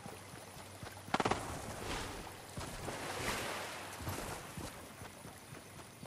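Water splashes as someone wades through a pond.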